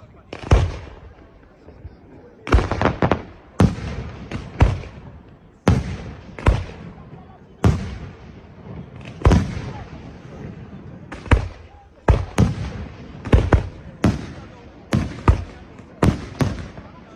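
Fireworks burst with loud booming bangs that echo away.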